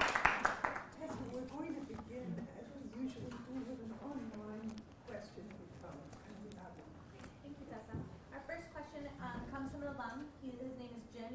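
A woman speaks calmly into a microphone in a hall.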